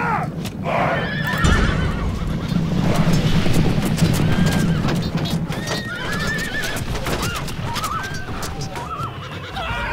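Many horses' hooves thud and rumble steadily.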